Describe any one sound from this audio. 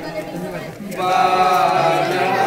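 A group of men sing together.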